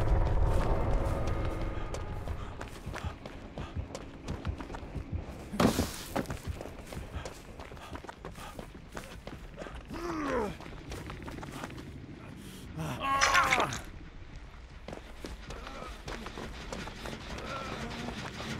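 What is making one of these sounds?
Quick footsteps run through tall grass.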